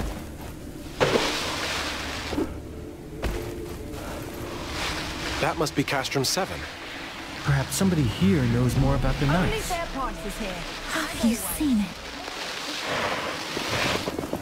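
Feet run and slide through loose sand with a rushing hiss.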